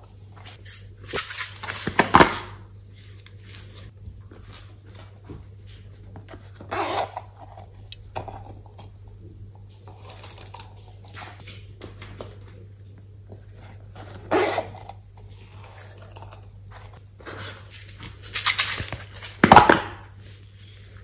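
Plastic containers clatter and tap as they are handled.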